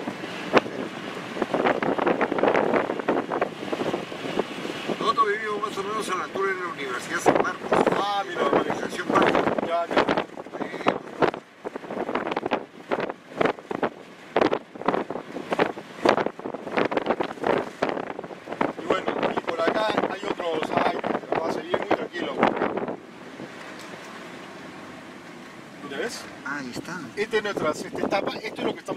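A man talks with animation close by inside a car.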